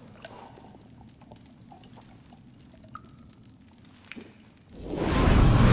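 A man gulps down a drink.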